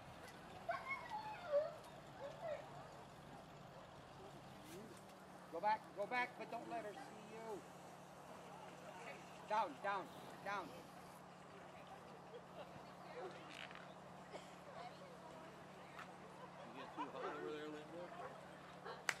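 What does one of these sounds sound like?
Men and women chat at a distance outdoors.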